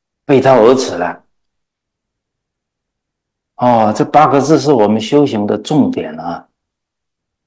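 A middle-aged man speaks calmly and earnestly into a close microphone.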